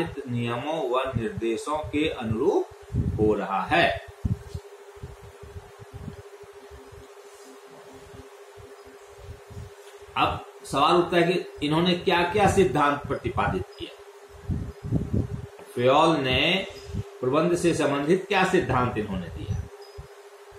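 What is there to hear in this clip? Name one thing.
A middle-aged man speaks calmly and close by, pausing now and then.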